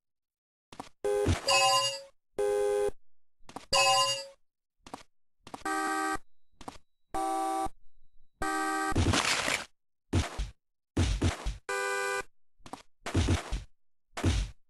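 Short electronic game tones blare in bursts, starting and stopping again and again.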